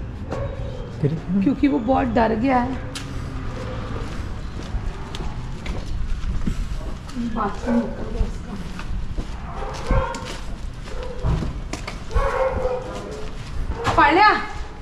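A woman talks nearby in a casual tone.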